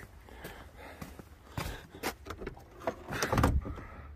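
A car door creaks open.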